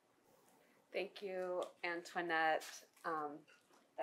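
A woman speaks calmly into a nearby microphone.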